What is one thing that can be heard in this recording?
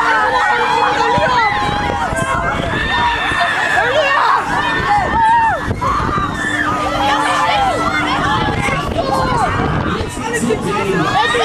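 Teenage riders scream and shriek on a swinging fairground ride.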